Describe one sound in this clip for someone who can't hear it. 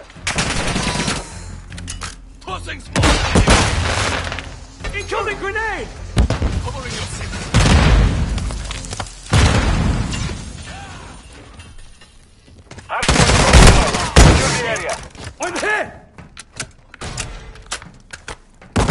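A rifle fires in loud, rapid bursts.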